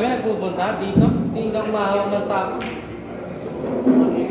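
Pool balls knock together and roll on the table.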